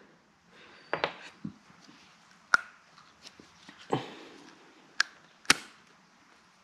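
Small plastic parts click and tap together.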